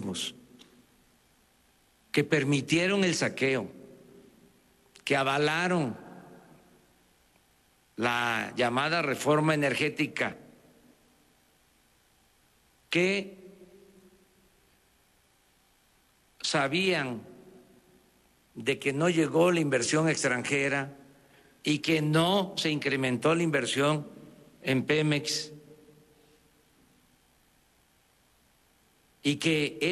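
An older man speaks emphatically into a microphone, in short bursts with pauses, in a reverberant room.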